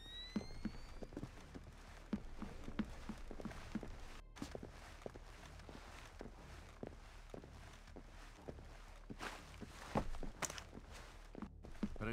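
Soft footsteps tread on a hard floor.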